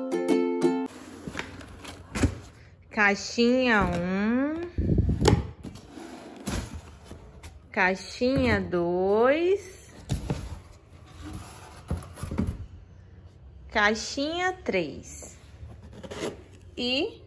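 Cardboard boxes scrape and rustle as they are moved.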